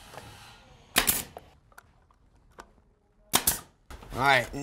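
A staple gun snaps sharply.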